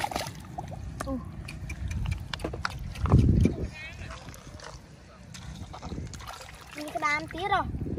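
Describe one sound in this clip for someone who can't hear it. Hands splash and scoop in shallow muddy water.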